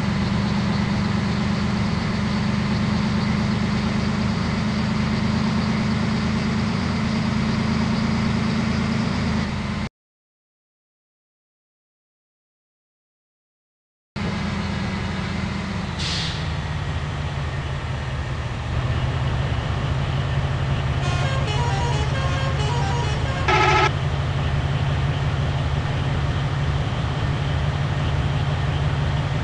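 A bus engine drones steadily at speed.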